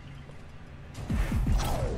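An energy beam blasts with a loud crackling zap.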